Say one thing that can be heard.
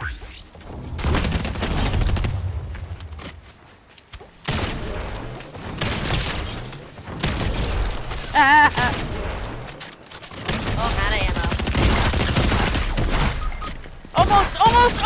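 Gunshots fire in rapid bursts.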